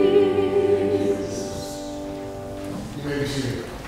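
An organ holds a final chord that fades out.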